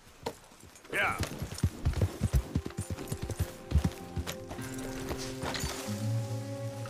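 Horse hooves thud as a horse gallops over grass.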